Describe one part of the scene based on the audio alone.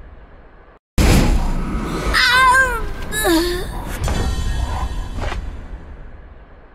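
Game sound effects chime and swoosh.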